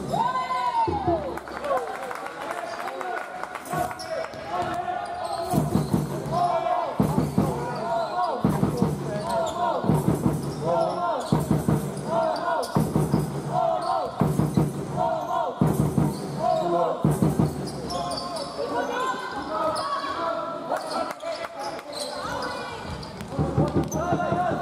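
A crowd cheers in an echoing hall.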